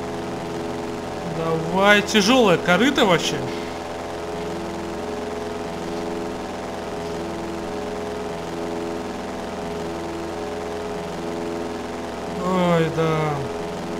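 A small propeller engine drones steadily.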